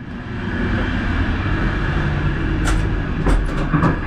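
A metal door handle clicks and rattles.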